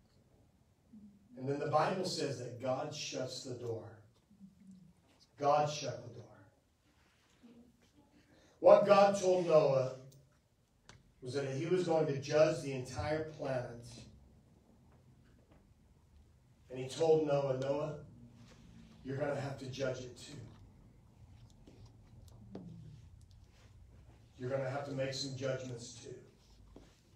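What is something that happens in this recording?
A middle-aged man speaks calmly into a microphone in phrases with pauses.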